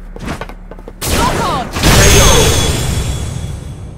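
A loud knockout blast booms and rings out.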